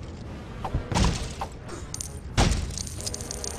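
Plastic bricks smash apart and scatter.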